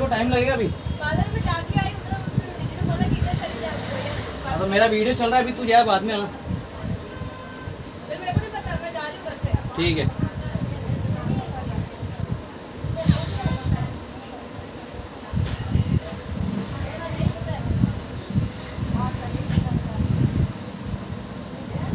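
A towel rubs against a man's face and beard.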